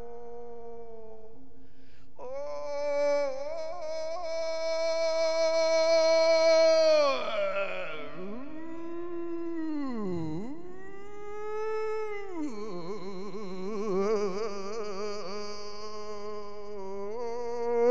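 A man chants in a long, drawn-out singing voice through a microphone.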